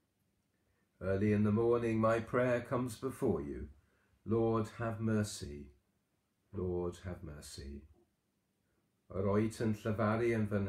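A middle-aged man speaks calmly and close to a microphone, in short phrases with pauses.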